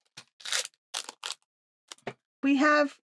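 A plastic packet crinkles in someone's hands.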